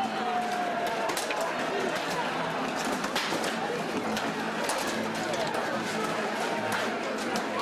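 A large crowd shouts and clamours outdoors.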